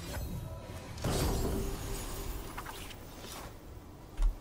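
A treasure chest opens with a magical shimmer.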